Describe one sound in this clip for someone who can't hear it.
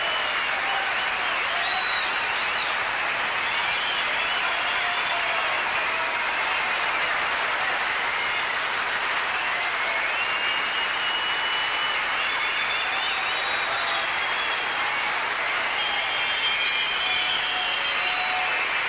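A crowd cheers and whistles loudly.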